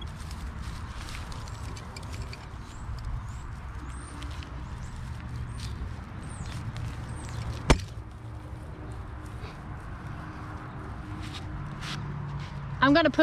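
Dry straw rustles and crackles as hands dig into it.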